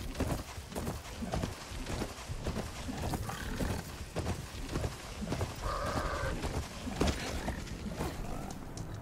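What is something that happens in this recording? Heavy mechanical footsteps thud rhythmically as a robotic beast trots over rough ground.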